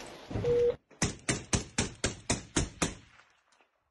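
A rifle fires a rapid series of loud, sharp shots close by.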